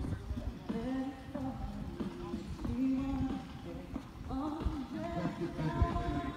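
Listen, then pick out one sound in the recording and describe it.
A horse canters over soft sand with dull thudding hoofbeats.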